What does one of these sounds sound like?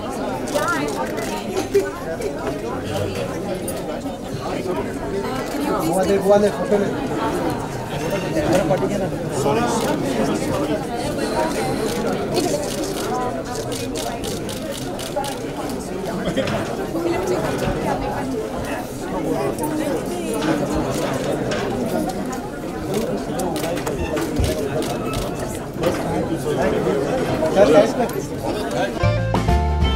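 A crowd of men and women chatters indoors.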